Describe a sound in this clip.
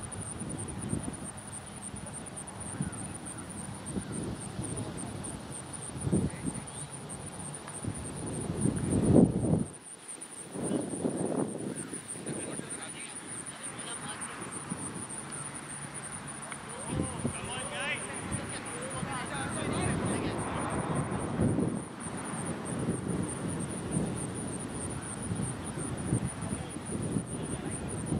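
Wind blows and rumbles outdoors in open country.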